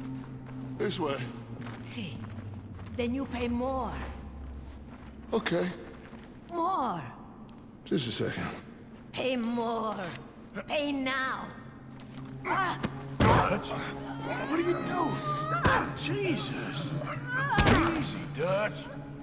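Men talk in low, tense voices close by.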